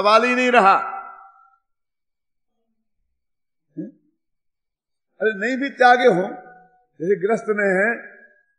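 An elderly man chants slowly and calmly through a microphone, with echo.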